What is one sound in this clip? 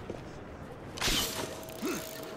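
A rope launcher fires with a sharp whoosh.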